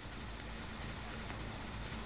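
A fire crackles softly.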